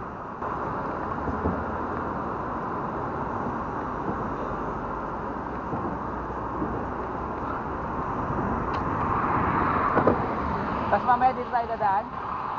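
Wind rushes and buffets steadily outdoors while riding along.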